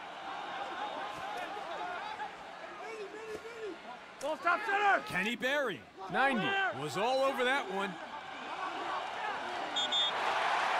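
A stadium crowd cheers steadily.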